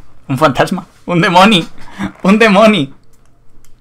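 A young man laughs loudly into a close microphone.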